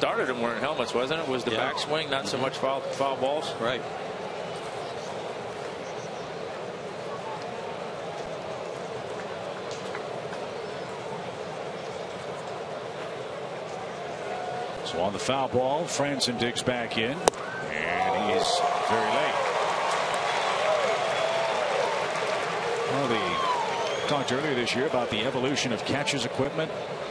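A large crowd murmurs in a big open stadium.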